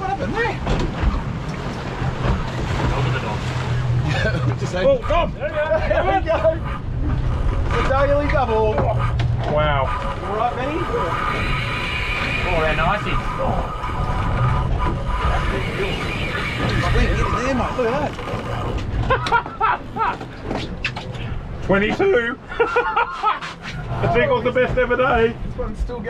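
A boat engine rumbles steadily.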